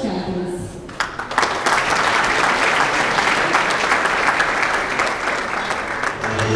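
A crowd of guests applauds and cheers loudly.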